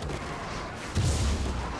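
A magic beam strikes with a deep, heavy boom.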